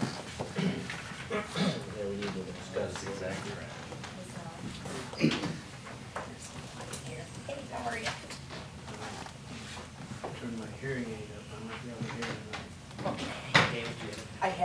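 Paper rustles and knocks on a table.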